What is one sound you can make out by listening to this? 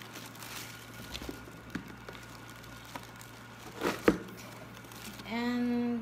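A cardboard box is opened and its flaps are handled.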